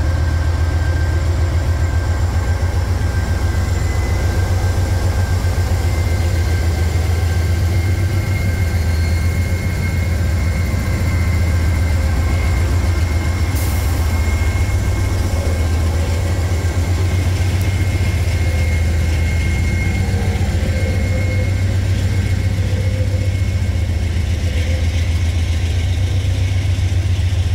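Diesel locomotive engines rumble loudly close by.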